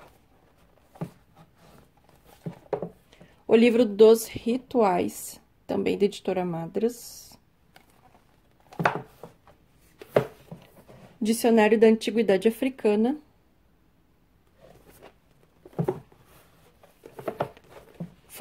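Books scrape and knock against each other as they are pulled from a shelf.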